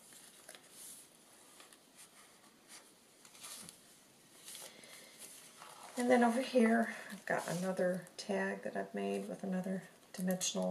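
Paper rustles softly as pages are handled and turned.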